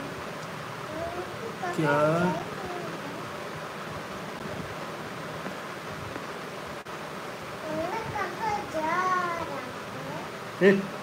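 A young man speaks softly close to the microphone.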